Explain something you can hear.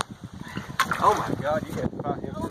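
A large fish splashes at the water's surface.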